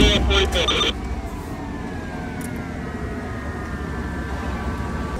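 A siren wails and slowly falls in pitch.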